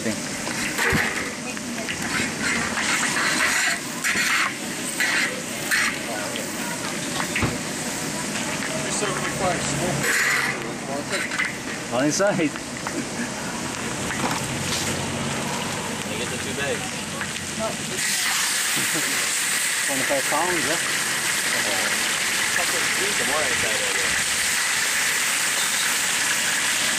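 Oil sizzles steadily in a hot pan.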